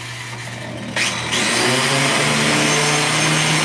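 An angle grinder whirs loudly and grinds against metal.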